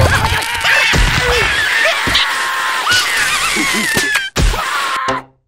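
A small creature lands with a soft thump.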